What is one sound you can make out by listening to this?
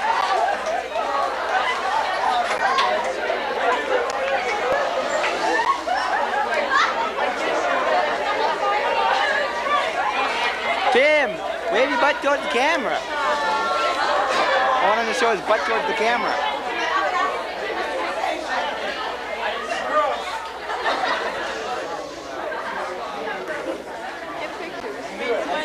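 A group of young people chatter and laugh close by.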